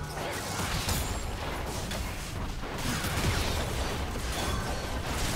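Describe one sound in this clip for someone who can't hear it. Magic blasts and weapon hits crackle and clash in a fast fight.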